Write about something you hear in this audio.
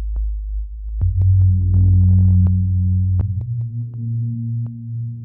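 A deep electronic bass tone throbs and changes pitch.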